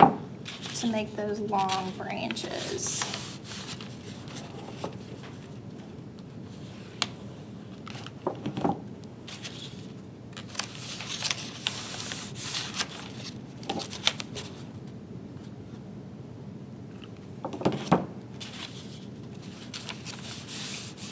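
Paper pages rustle and crinkle as hands fold them.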